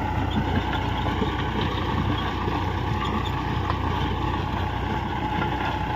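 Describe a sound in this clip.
A rotary tiller churns through dry soil with a rough rattling.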